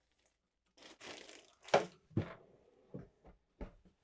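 A drawer slides shut with a soft thud.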